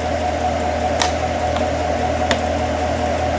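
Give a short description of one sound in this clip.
Plastic engine parts click and knock.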